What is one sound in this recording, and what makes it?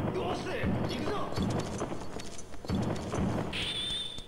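Heavy thuds land in quick succession.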